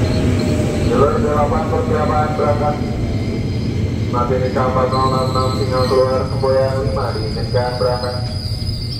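A train horn sounds twice.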